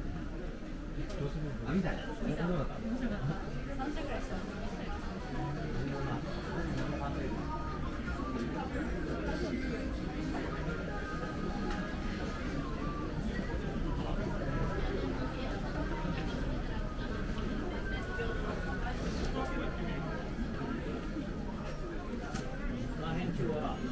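A crowd murmurs and talks all around in a busy indoor space.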